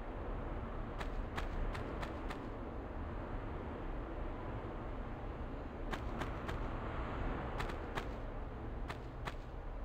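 Footsteps tap quickly on a stone floor in an echoing room.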